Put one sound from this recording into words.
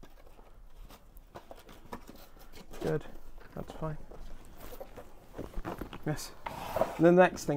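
Cardboard rustles and thumps as a box is unpacked.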